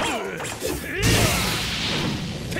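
A rock bursts apart with a heavy crash.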